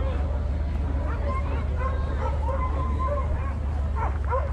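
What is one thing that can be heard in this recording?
Several dogs whine and howl eagerly nearby.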